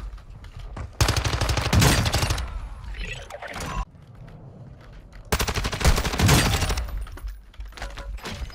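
Rapid automatic gunfire rattles in loud bursts.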